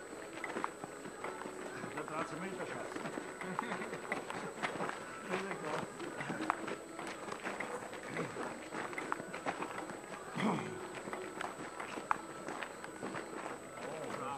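Several men talk and shout with animation nearby.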